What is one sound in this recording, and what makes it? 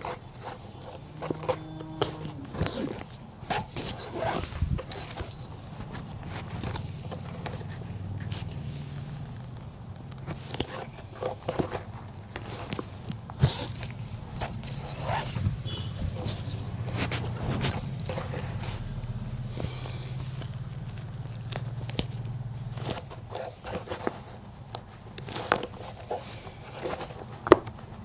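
Small clicks and taps come from handling a shoe.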